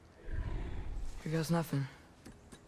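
A boy speaks softly.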